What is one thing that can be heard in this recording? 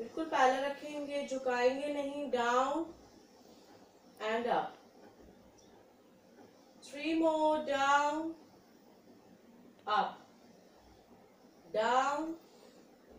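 A young woman speaks calmly in short bursts, close by.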